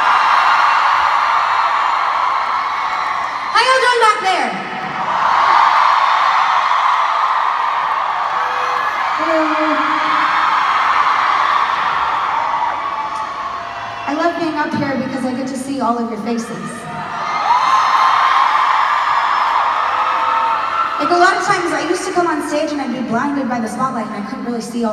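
A large crowd cheers and screams.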